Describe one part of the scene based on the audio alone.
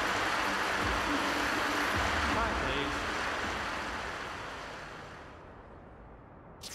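A crowd applauds loudly, then the applause fades away.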